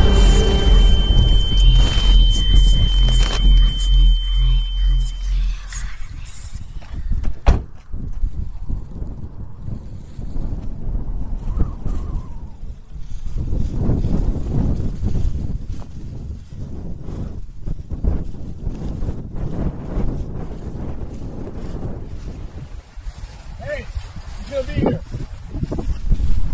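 Wind blows and rumbles across the microphone outdoors.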